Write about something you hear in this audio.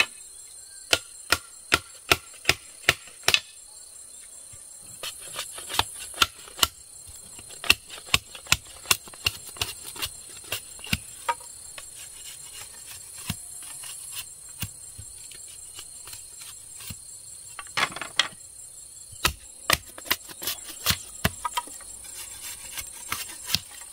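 A machete chops and scrapes at bamboo in sharp, quick strokes.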